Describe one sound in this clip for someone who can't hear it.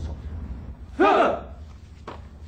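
Several men answer together in a loud shout.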